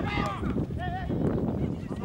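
A football thuds as a player kicks it hard.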